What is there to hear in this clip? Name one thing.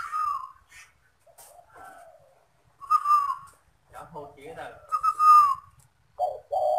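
A dove calls with short whistling coos close by.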